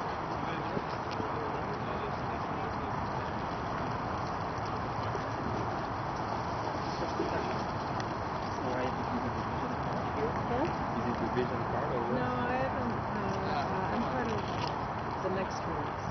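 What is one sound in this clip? Men in a small crowd chat quietly a short distance away.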